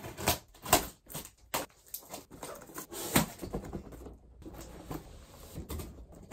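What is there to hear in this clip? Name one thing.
Paper packing crackles and rustles.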